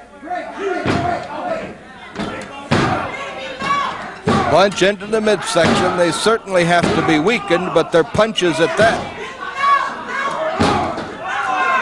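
A wrestler's blows land with hard slaps on bare skin.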